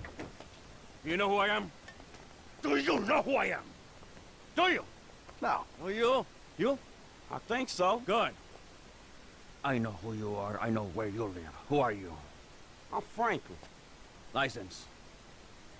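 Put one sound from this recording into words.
A middle-aged man speaks calmly and menacingly close by.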